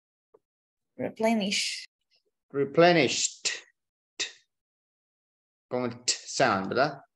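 A young woman speaks in short phrases over an online call.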